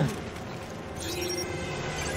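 An electronic scanner beeps softly.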